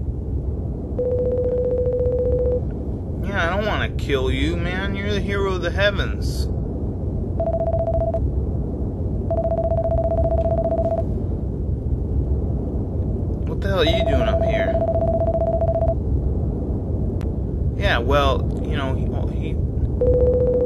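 A rapid string of high electronic blips beeps in short bursts.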